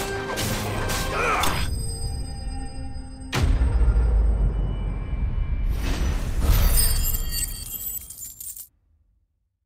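Sword blows and magic bursts crash in a loud fight, then fall silent.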